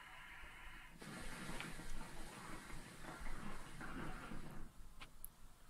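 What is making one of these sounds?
A man exhales a long breath of smoke.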